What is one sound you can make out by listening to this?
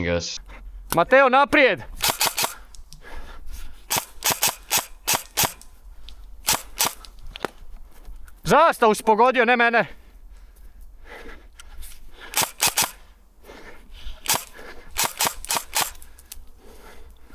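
An airsoft gun fires sharp bursts of quick snapping shots close by.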